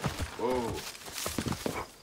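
Leaves rustle as someone pushes through bushes.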